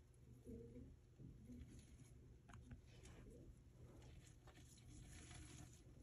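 A bearded dragon chews on a rat pup.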